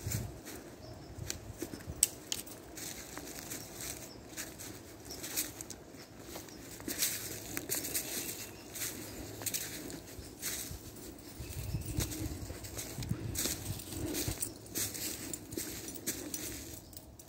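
Footsteps crunch on dry leaves on the ground.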